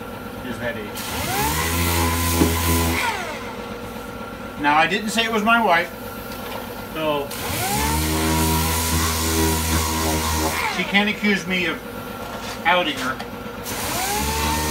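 A power tool whirs steadily in short bursts, winding up and down.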